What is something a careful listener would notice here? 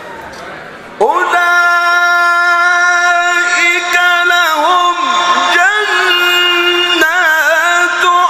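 A man chants a long melodic call loudly through a microphone and loudspeakers.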